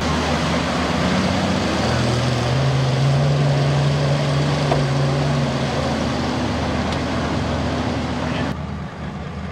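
Mud and water splash and slosh under spinning tyres.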